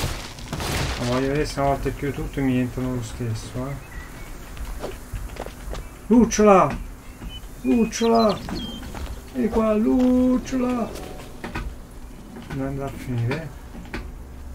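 A man talks with animation close to a microphone.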